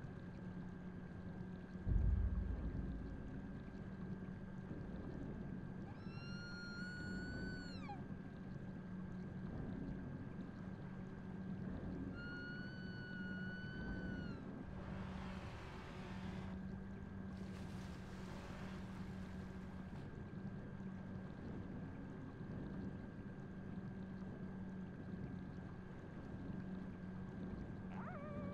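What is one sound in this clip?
A small submarine's motor hums steadily underwater.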